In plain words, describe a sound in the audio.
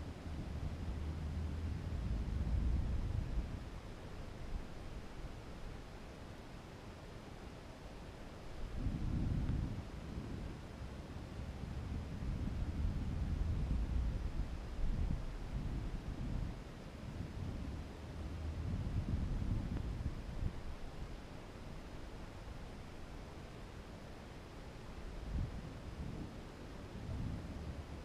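Wind rumbles and buffets against the microphone in uneven gusts.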